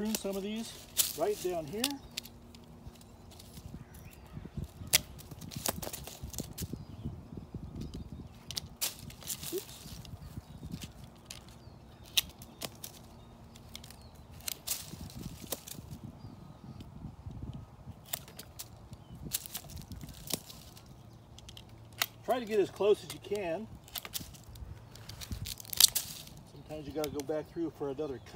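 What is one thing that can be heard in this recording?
Pruning shears snip through thin branches.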